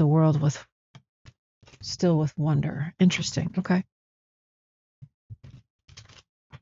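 A cloth pouch rustles as hands handle it.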